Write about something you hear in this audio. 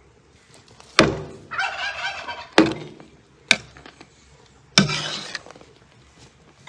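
A ladle scrapes and stirs thick jam in a metal pot.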